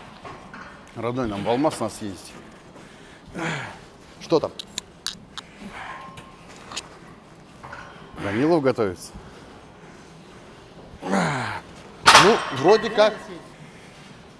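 A man grunts and strains loudly with effort.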